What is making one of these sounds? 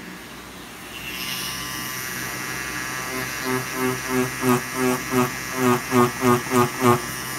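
A tattoo machine buzzes steadily up close.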